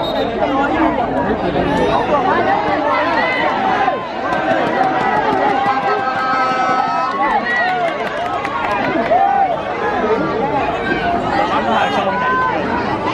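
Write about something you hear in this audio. A large crowd of men and women chatter and call out loudly outdoors.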